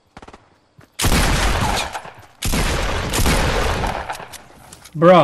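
A gun fires a loud blast.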